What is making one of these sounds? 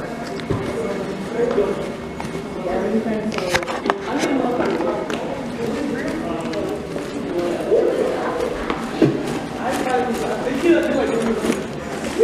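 Feet stomp and shuffle on a hard floor.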